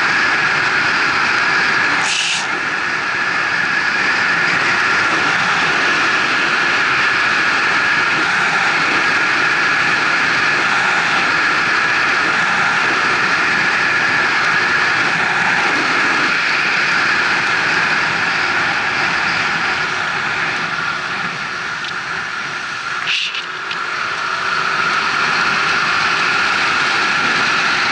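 An engine hums steadily.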